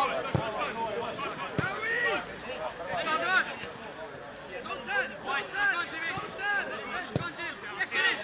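A ball is kicked with a dull thud on a grass field.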